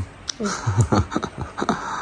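A young girl laughs briefly.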